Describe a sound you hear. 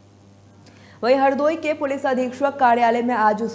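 A young woman reads out the news clearly through a microphone.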